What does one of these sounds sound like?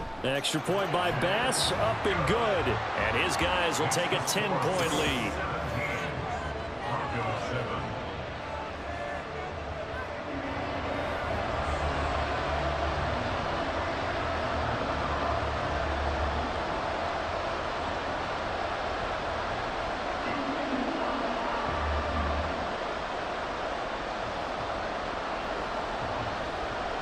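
A large crowd cheers and roars loudly in a big stadium.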